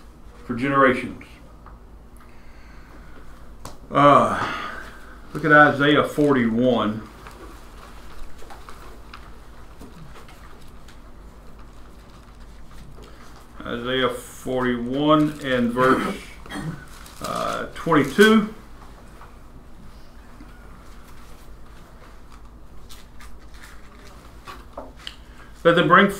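A middle-aged man speaks calmly, with long pauses.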